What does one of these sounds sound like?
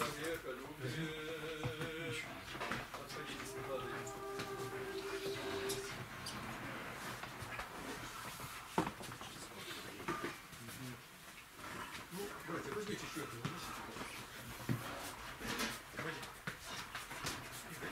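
A metal pot clanks as it is carried.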